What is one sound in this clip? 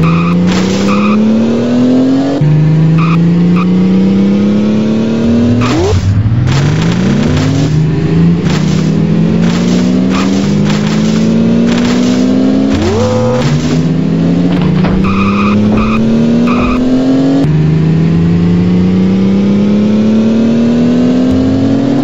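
A car engine revs up and shifts gears again and again.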